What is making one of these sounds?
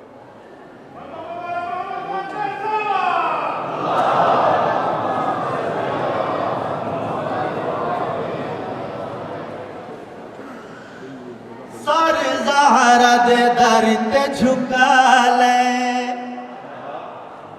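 A man recites with emotion through a microphone in an echoing hall.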